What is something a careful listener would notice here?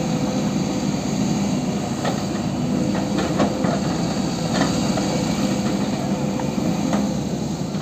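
An excavator bucket scrapes and thuds into dirt.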